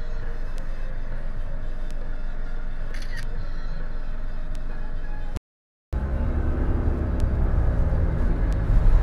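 A car's engine and tyres rumble from inside the cabin while driving.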